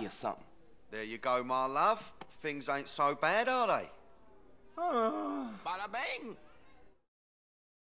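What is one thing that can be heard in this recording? A man answers in a softer, pleading voice, close by.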